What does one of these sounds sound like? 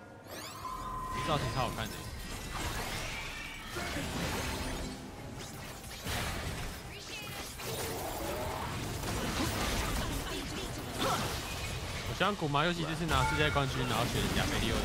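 Magic blasts and bursts crackle and whoosh in a fast game fight.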